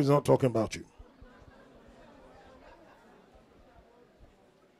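An audience laughs softly.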